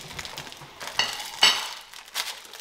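A plate clinks against a hard surface.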